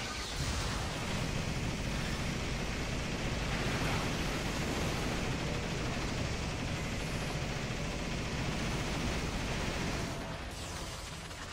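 A mech's engines roar steadily.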